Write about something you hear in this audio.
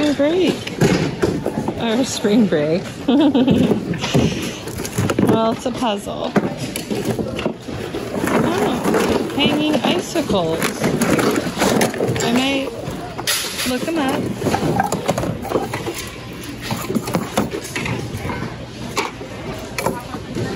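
Plastic items rustle and clatter as a hand rummages through a pile of objects.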